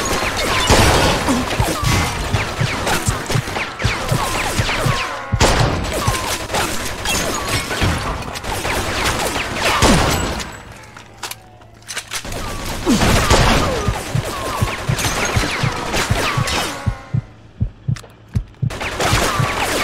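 Gunshots fire in rapid bursts, echoing loudly.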